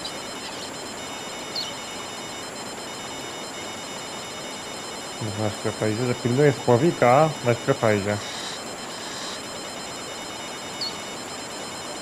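A fishing reel clicks as it is wound in.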